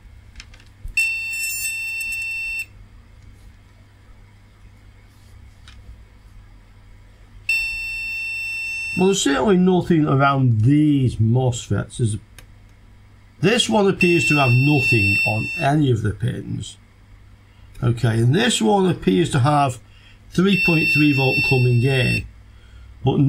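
An electronic beeper sounds in long, steady beeps.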